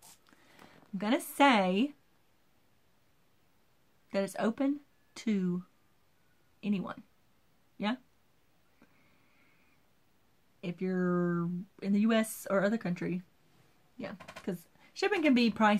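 A woman talks in a calm, chatty way, close to the microphone.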